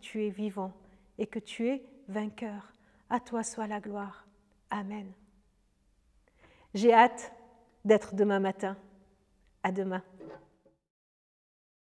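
A middle-aged woman speaks warmly and close to a microphone.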